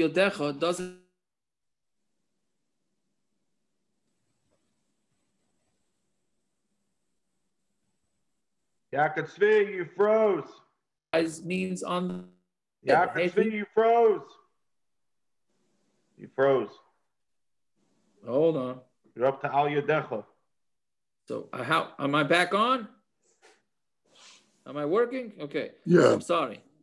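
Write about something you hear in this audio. A man speaks calmly through an online call, in bursts with pauses.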